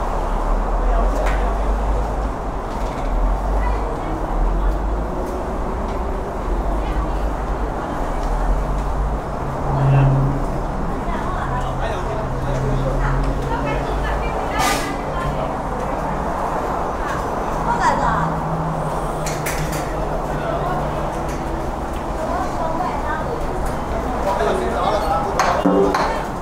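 Men and women talk and chatter nearby outdoors.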